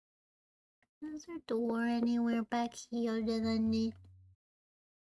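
A young woman speaks with animation in a high, sing-song voice into a microphone.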